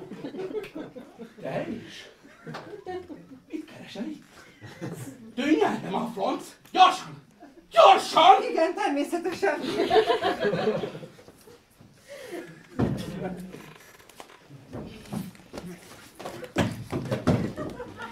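A middle-aged man speaks loudly and theatrically.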